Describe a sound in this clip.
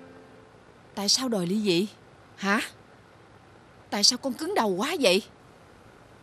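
A middle-aged woman speaks sharply and with emotion close by.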